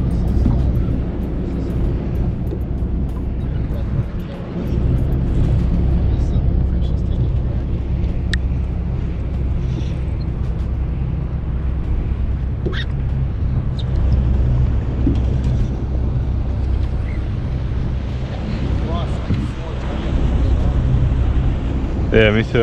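Wind blows steadily over open water.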